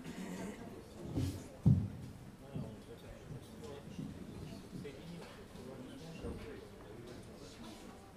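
A piano plays.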